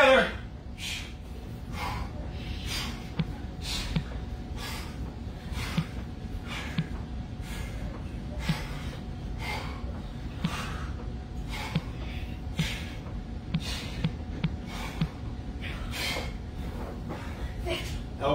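A man breathes out sharply in a steady rhythm while exercising.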